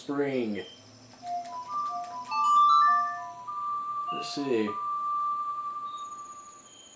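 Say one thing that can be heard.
An ocarina plays a short tune of clear, held notes.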